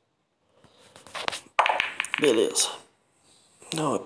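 Billiard balls clack together as a cue ball breaks the rack.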